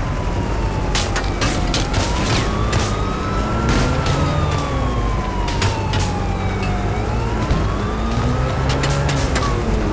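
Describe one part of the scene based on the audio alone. A car bumps and scrapes against a barrier.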